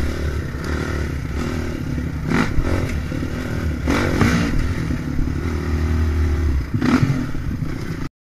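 A dirt bike engine revs and drones up close.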